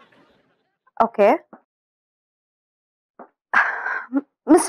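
A woman speaks on a phone, with animation and at close range.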